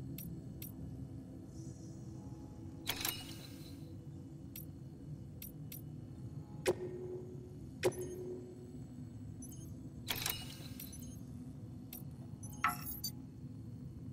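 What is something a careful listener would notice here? Soft electronic menu clicks and chimes sound now and then as options are selected.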